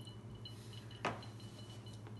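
A glass clinks as it is set down on a table.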